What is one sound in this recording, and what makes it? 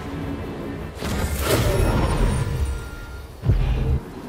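A magical portal whooshes loudly.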